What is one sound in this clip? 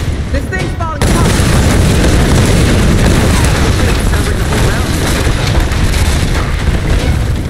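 A fiery explosion roars and rumbles.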